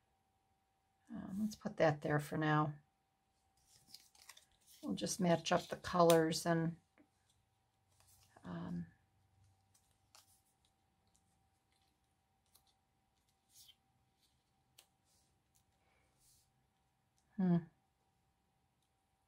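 Paper cards rustle and slide softly as hands arrange them.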